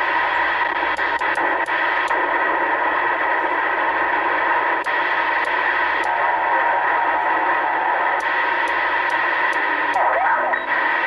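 A channel knob clicks as it is turned.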